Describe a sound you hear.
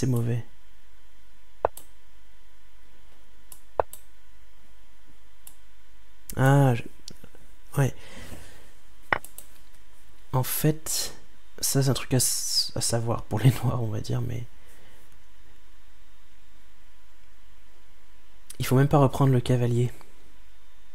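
A man talks calmly and close to a microphone, in short bursts with pauses.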